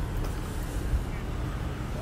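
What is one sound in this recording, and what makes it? A car engine hums as a car rolls slowly by.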